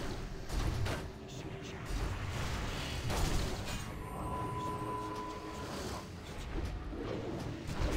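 Magic spells crackle and boom in a busy battle.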